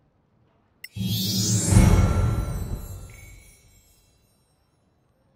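A triumphant game chime swells and fades.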